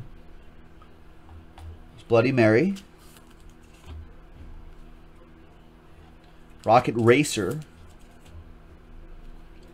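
Trading cards slide and tap as they are shuffled by hand.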